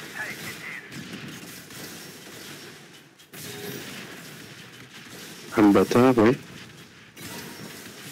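Explosions rumble and crackle in a battle.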